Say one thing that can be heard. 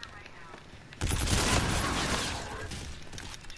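An explosion booms and debris rains down.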